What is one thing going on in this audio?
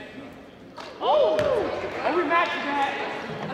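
Sneakers squeak sharply on a wooden court in an echoing gym.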